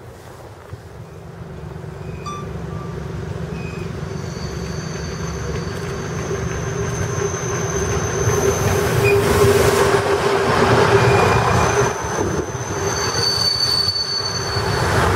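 A diesel train engine rumbles as a train approaches and passes close by.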